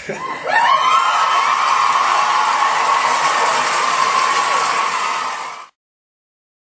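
An elderly man cheers loudly into a microphone.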